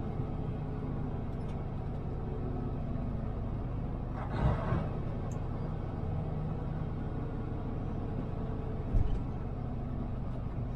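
A vehicle's engine hums steadily as it drives along a road.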